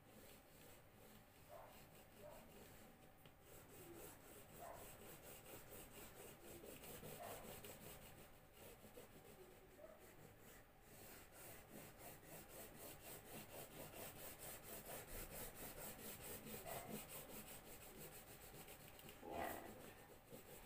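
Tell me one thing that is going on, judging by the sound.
A marker scratches rapidly back and forth on paper.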